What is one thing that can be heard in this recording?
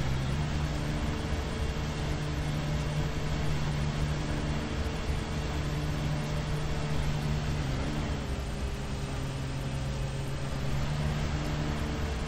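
A lawn mower engine runs steadily with a low hum.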